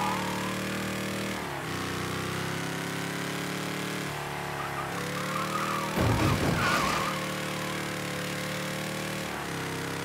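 A car engine roars steadily, its pitch rising and dropping with each gear change.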